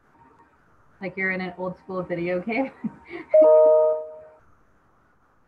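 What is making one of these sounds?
A woman talks with animation over an online call.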